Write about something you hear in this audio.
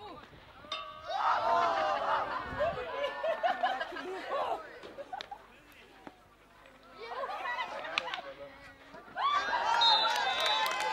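Teenage boys shout and call out across an outdoor field.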